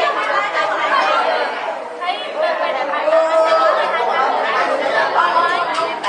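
A young woman talks steadily nearby, explaining.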